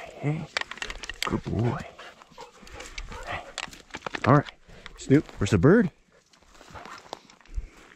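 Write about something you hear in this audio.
A dog rustles through dry grass and brush close by.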